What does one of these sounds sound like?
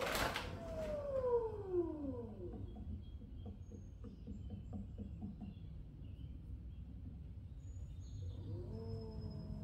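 A potter's wheel whirs steadily.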